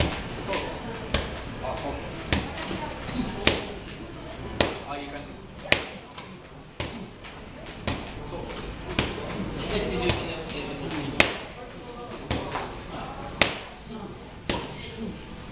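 Gloved punches thud sharply against pads at a steady pace, echoing in a large room.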